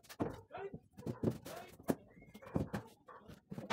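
Wooden boards knock and clatter together.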